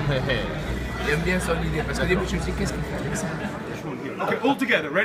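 Men talk and chatter close by in a crowded, echoing room.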